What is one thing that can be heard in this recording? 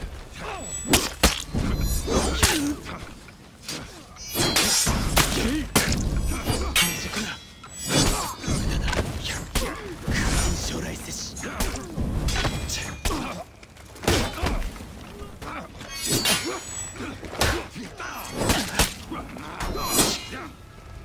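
Steel swords clash and clang sharply again and again.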